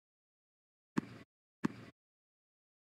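A tennis ball bounces on a hard court before a serve.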